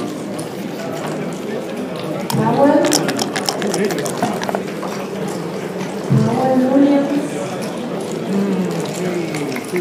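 Plastic checkers click against a wooden board.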